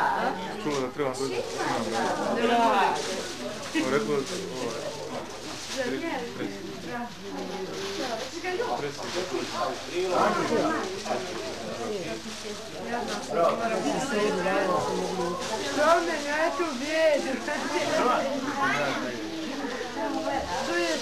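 Several children and adults talk and chatter close by.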